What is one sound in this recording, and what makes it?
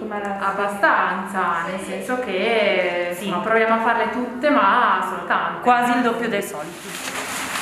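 A young woman speaks calmly into a microphone close by.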